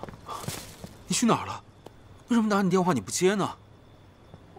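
A young man asks questions with worried urgency nearby.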